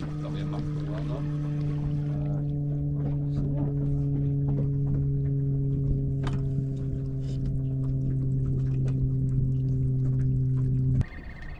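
An outboard motor hums steadily nearby.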